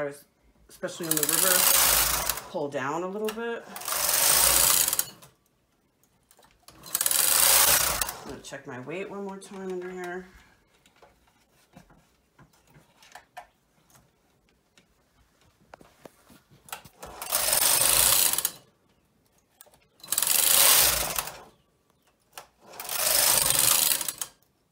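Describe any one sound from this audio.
A knitting machine carriage slides across the needle bed with a loud rushing clatter.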